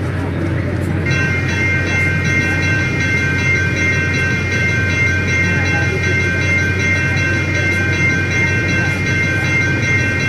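A train horn blares in a long, steady chord.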